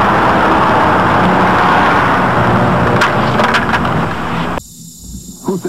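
Loud city noise roars outdoors.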